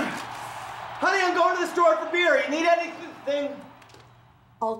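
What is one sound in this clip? A man speaks, close by.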